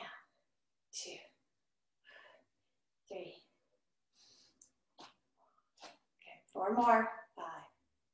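A woman speaks with energy, close by, in short bursts.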